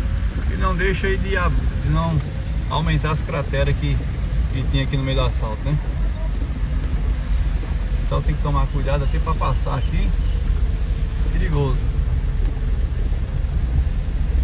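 A windshield wiper swishes across wet glass.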